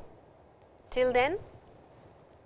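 A middle-aged woman speaks calmly and clearly, close to a microphone.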